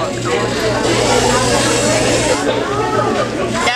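A small toy robot's motor whirs as it rolls across the floor.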